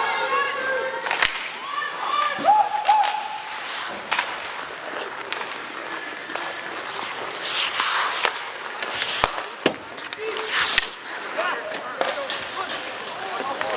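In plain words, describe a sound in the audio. Children shout and call out across a large echoing rink.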